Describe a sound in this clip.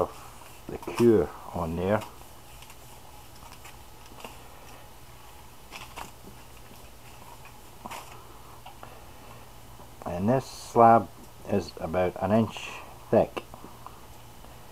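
Aluminium foil crinkles as hands fold it.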